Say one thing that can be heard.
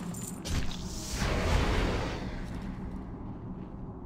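Magic lightning bursts with a loud crackle.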